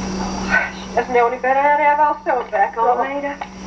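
A woman speaks through a television speaker.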